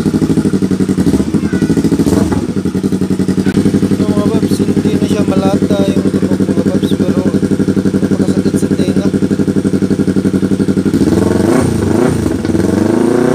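A motorcycle engine revs up and down sharply.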